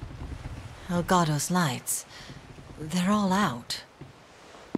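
A young woman speaks quietly and with worry.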